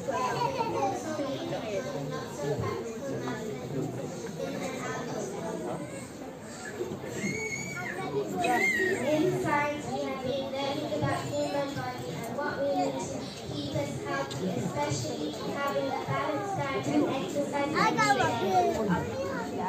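A young girl speaks into a microphone through loudspeakers in a large echoing hall.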